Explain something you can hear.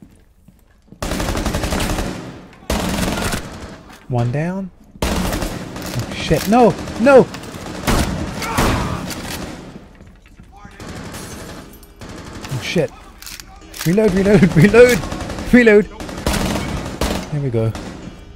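Gunfire rattles in rapid bursts indoors.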